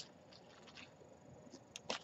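Small beads click softly as a hand picks them up.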